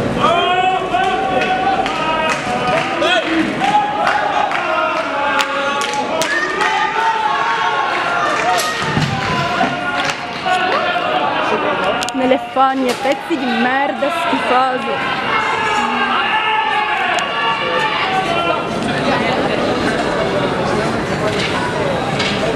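A crowd of men shout angrily nearby outdoors.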